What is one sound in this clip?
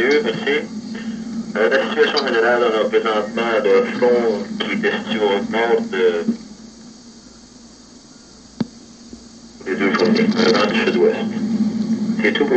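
A young man talks with animation into a microphone, heard over the radio.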